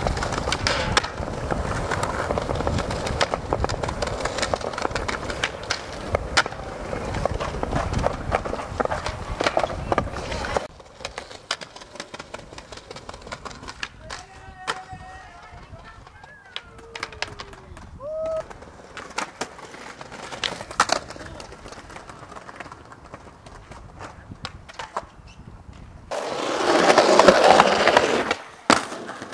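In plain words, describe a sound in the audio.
Skateboard wheels roll and rumble over paving stones.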